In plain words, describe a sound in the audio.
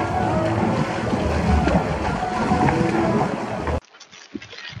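Water sloshes and splashes around a child rolling inside an inflatable ball.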